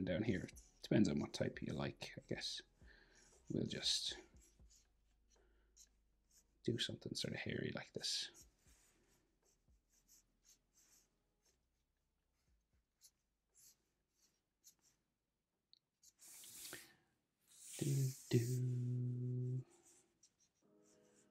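A felt-tip marker squeaks and scratches across paper in short strokes.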